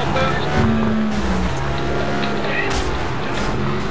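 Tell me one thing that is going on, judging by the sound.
A car crashes into another with a metallic scrape.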